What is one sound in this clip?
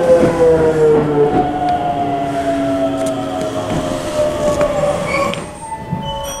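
A train's motor whines and slowly falls in pitch.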